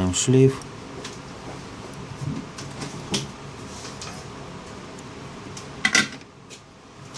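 Small plastic parts click and tap as fingers handle a device.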